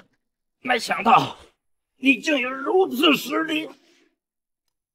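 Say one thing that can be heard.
A young man speaks calmly and clearly.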